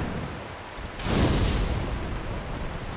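A burst of fire roars with a loud whoosh.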